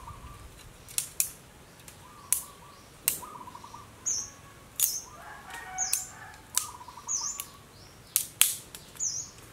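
Dry twigs snap and crack in quick, sharp breaks.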